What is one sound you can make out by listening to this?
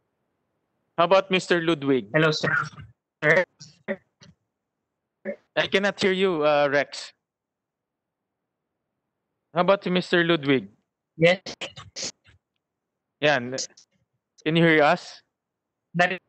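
A man speaks calmly into a microphone, heard through an online call, in short phrases with pauses.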